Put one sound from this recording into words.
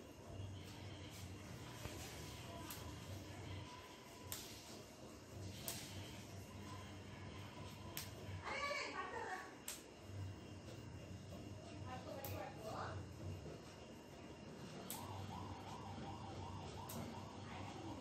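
Green beans snap crisply in small hands.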